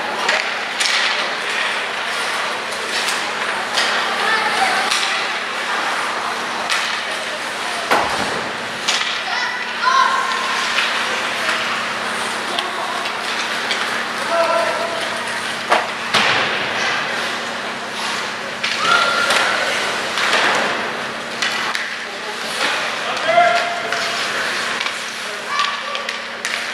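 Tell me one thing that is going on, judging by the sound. Hockey sticks clack against a puck on ice.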